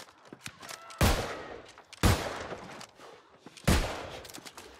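A gun fires loud booming shots.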